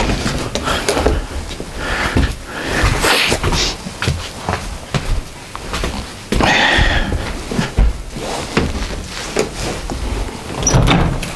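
A cardboard box is handled and shifted with rustling and knocks.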